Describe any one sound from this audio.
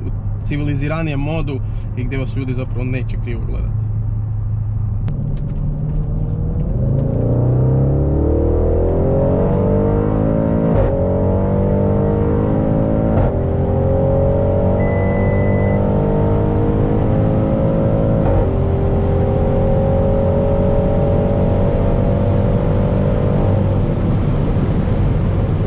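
Tyres rumble on the road from inside the car.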